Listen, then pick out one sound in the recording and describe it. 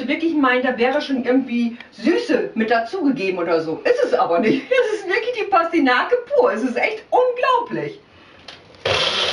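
A middle-aged woman talks calmly and cheerfully close by.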